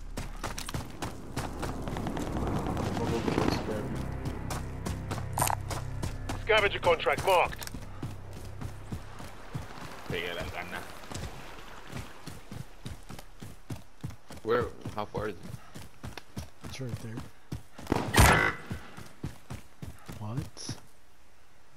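Footsteps run quickly over ground.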